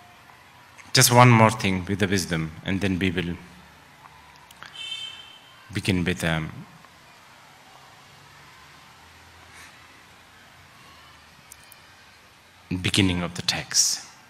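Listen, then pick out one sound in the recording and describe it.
An elderly man speaks warmly and calmly into a microphone.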